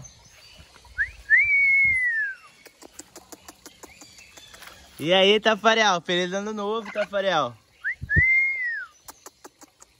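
A parrot whistles a short rising and falling note.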